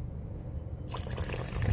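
Water pours from a pan and splashes into a bucket.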